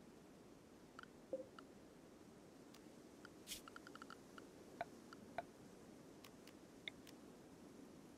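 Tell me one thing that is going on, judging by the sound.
Soft interface clicks and blips sound as menus open and items are selected.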